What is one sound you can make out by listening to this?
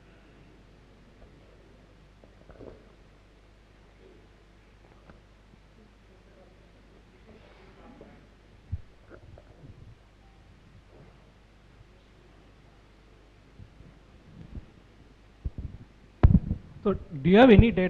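A man speaks haltingly through a microphone in a large hall.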